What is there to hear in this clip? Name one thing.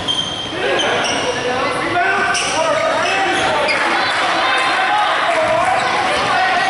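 Young men shout to each other across an echoing gym.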